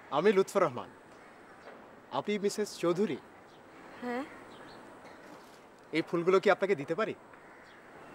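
A young man speaks calmly nearby, in short phrases.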